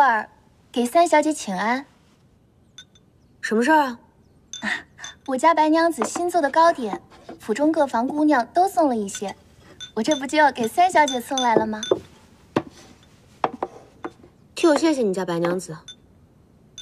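Young women speak calmly and clearly, close by.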